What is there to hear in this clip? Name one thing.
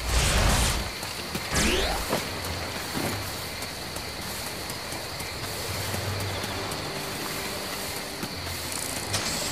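Quick footsteps run across grass.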